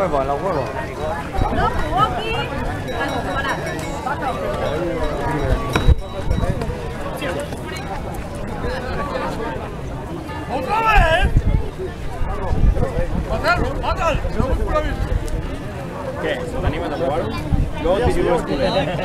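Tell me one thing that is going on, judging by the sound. Children shout and chatter excitedly nearby.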